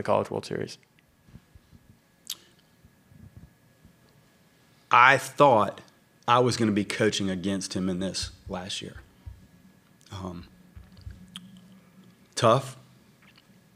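A middle-aged man speaks calmly and haltingly into a microphone, with pauses.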